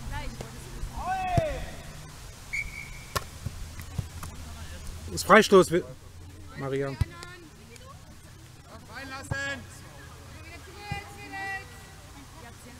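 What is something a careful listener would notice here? Young players shout to each other in the distance outdoors.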